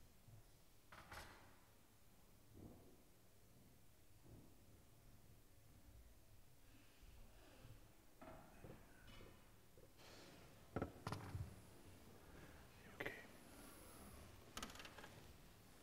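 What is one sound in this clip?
Knocks and thumps echo through a large hall.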